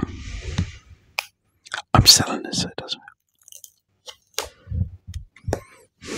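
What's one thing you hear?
Paper rustles and crinkles close to a microphone.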